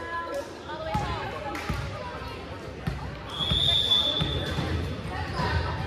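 Voices of a crowd of girls chatter and call out in a large echoing gym.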